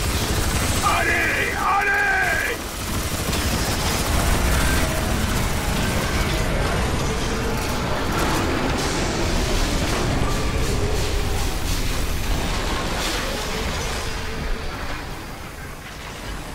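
Explosions rumble and boom.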